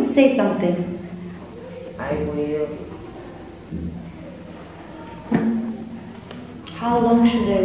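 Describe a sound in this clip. A boy speaks calmly close by, in short phrases.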